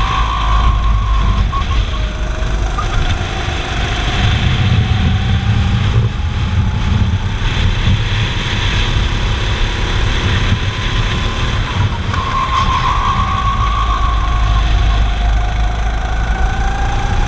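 A go-kart engine whines loudly close by, rising and falling in pitch through the turns.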